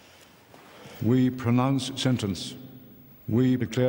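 An elderly man speaks in a slow, deep voice nearby.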